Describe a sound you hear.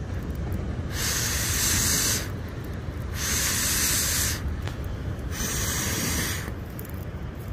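A man blows hard on a small fire in several long breaths.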